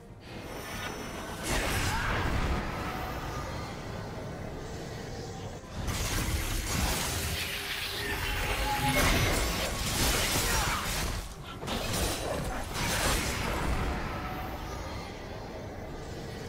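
Video game spell effects whoosh and crackle in quick bursts.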